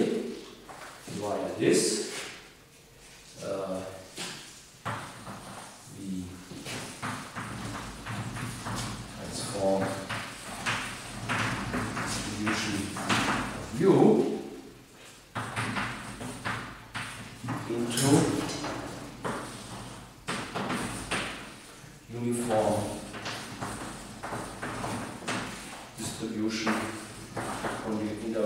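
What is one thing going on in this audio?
A man speaks calmly, lecturing in a room with some echo.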